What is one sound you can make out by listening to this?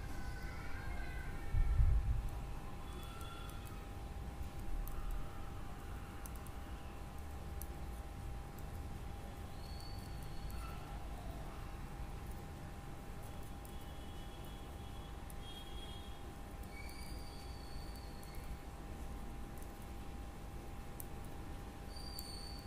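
Metal knitting needles click and tick softly as yarn is knitted.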